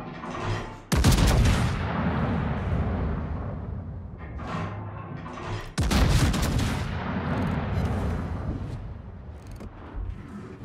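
Heavy naval guns fire in loud booming salvos that rumble away.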